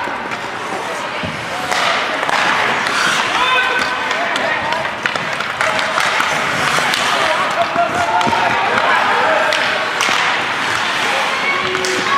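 Hockey sticks click against the puck.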